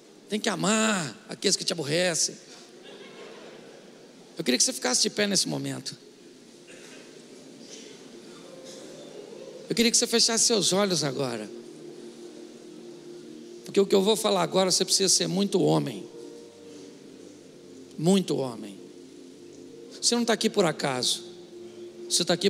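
An elderly man speaks with animation into a microphone, heard through loudspeakers in a large hall.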